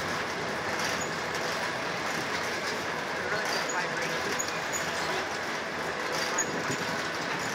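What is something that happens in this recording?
Metal wheels squeal faintly against the rails.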